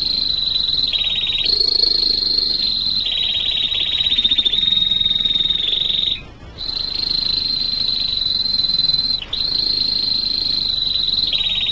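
A small songbird sings a long, rapid, high trilling song with short pauses.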